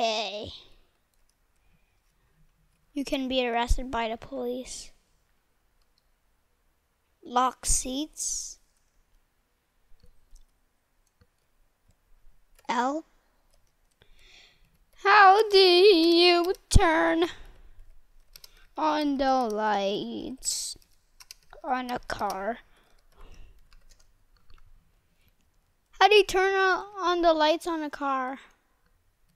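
A young boy talks with animation into a close microphone, in short bursts.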